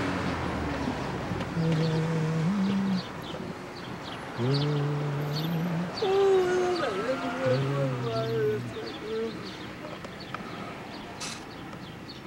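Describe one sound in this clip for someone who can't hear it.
A car drives along a street, heard from inside.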